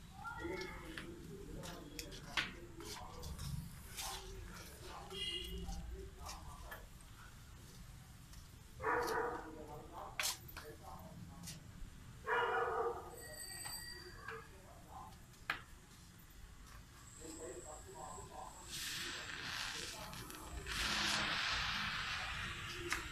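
An electric welding arc crackles and hisses.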